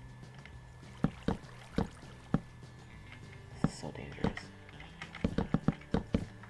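Wooden blocks thud as they are placed, one after another.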